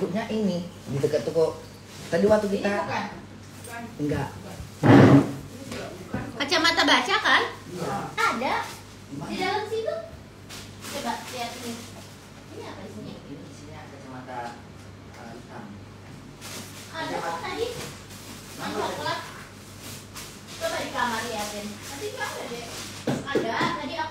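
A young woman talks calmly, close to the microphone.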